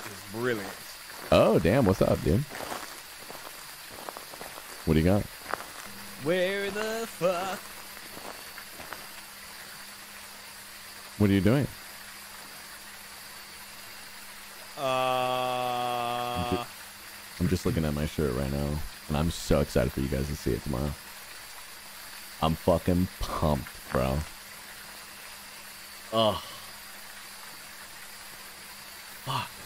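A young man talks into a close microphone in short, animated bursts.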